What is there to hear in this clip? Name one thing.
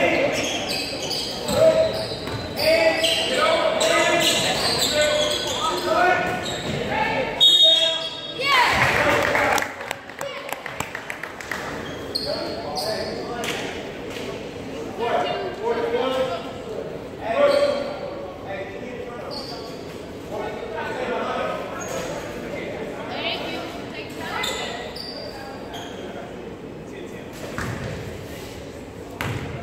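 Voices of young players and spectators call out in the gym.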